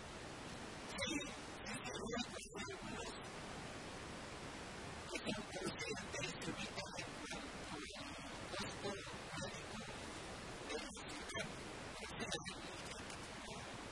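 A middle-aged man speaks calmly into a microphone up close.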